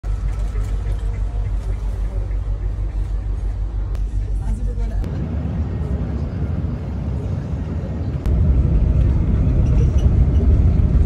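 A bus engine hums steadily with a low rumble from inside the cabin.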